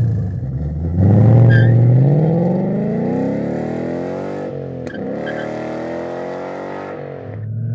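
A car engine revs hard and pulls away, its exhaust roaring and fading into the distance.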